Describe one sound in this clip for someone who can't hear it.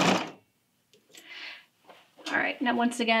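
Fabric rustles as it is pulled from a sewing machine.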